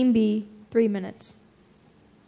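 A young woman speaks briefly at the start.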